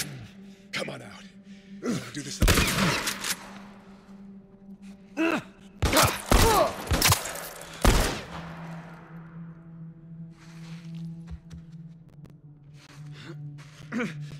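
A man groans and breathes hard in pain, close by.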